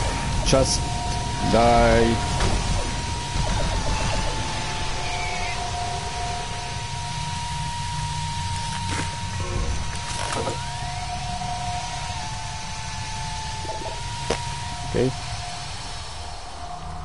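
A low mechanical hum drones steadily throughout.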